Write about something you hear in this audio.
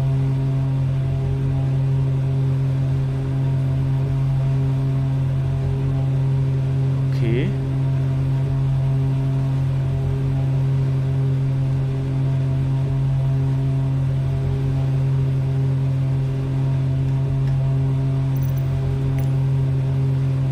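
A propeller plane's engines drone steadily from inside the cockpit.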